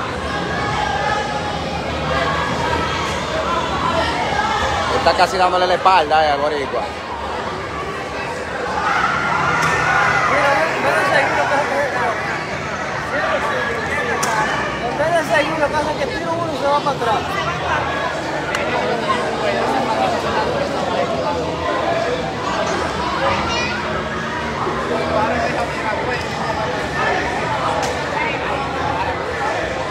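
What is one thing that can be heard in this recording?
A ringside crowd of men shouts and chatters.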